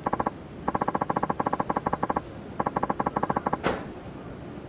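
Short electronic blips chirp in quick bursts.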